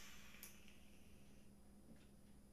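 A man blows out a long, hissing breath close by.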